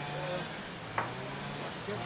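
A hammer taps a nail into wood.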